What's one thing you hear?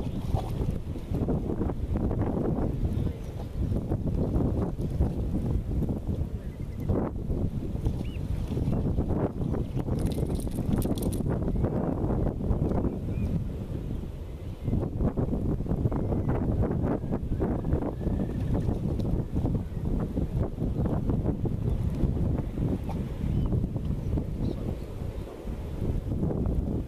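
Wind blows hard outdoors, rumbling against the microphone.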